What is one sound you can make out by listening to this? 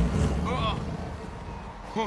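A man shouts in alarm.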